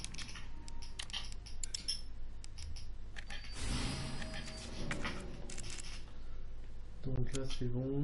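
Soft clicks tick as menu items are selected.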